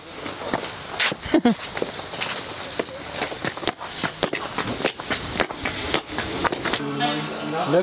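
Footsteps crunch and scrape on snowy ground outdoors.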